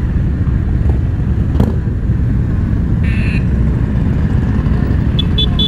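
Many motorcycle engines rumble steadily as riders pass by outdoors.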